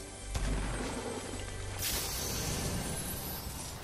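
A treasure chest opens with a shimmering, chiming sound.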